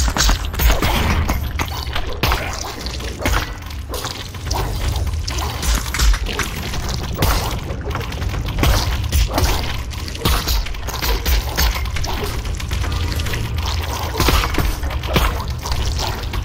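A sword slashes and strikes creatures with wet, squelching hits.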